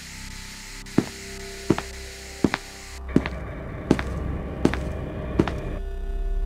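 Footsteps thud on a hard floor at a steady walking pace.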